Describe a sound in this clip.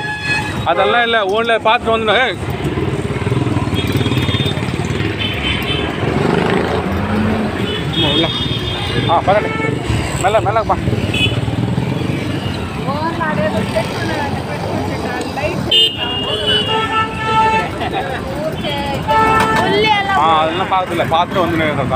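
A crowd of people chatters and shouts nearby outdoors.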